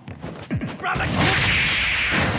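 A huge explosion booms and crackles.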